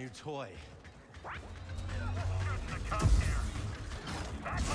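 A lightsaber hums and clashes in combat.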